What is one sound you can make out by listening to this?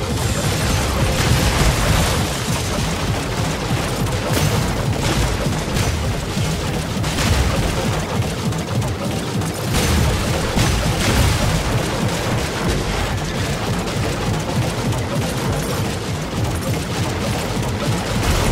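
Cartoon blasts and explosions pop and crackle in quick bursts.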